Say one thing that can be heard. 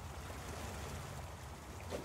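A waterfall rushes with a steady roar.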